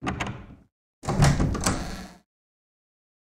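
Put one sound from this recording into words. A door creaks open slowly.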